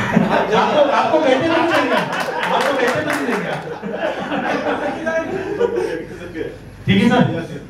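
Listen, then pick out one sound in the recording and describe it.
A group of men laugh and chatter loudly in a room.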